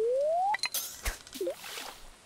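A bobber plops into the water.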